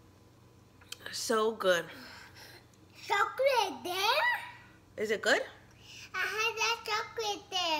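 A small boy talks close by.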